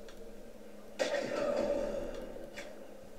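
A crossbow fires a bolt with a sharp snap.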